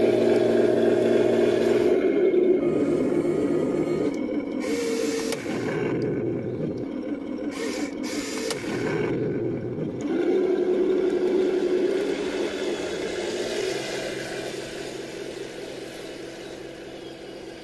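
A toy tank's electric motor whirs steadily and fades as the tank drives away.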